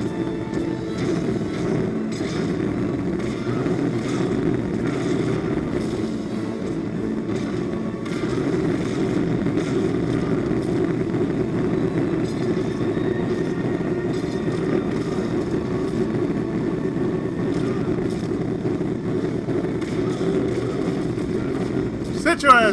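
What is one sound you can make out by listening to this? Blades slash and strike with sharp hits.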